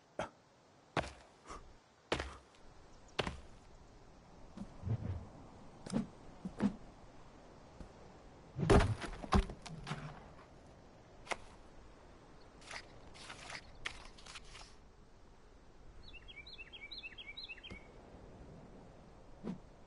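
Heavy wooden logs thud and knock as they are set in place.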